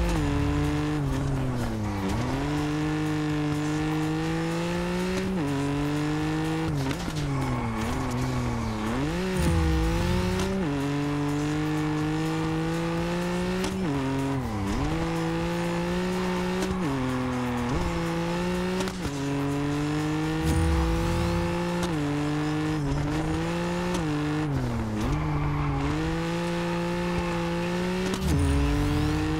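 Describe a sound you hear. A car engine revs hard, rising and dropping in pitch as the gears shift.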